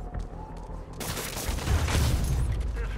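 A web shoots out with a sharp whoosh.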